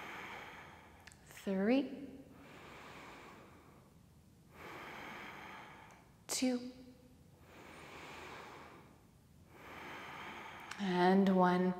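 A woman breathes in and out slowly and deeply.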